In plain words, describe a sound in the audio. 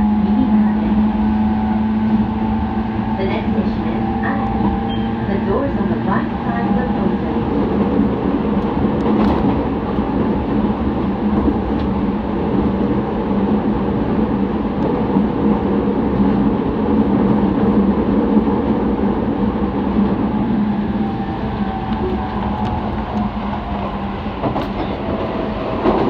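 An electric commuter train rumbles along the track, heard from inside a carriage.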